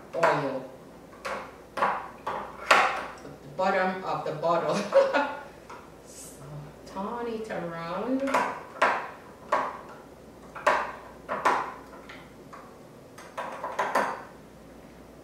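A spoon clinks against a glass jar while stirring.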